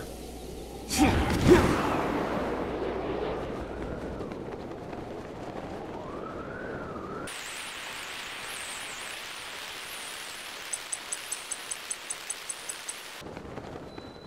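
Wind rushes steadily past a glider.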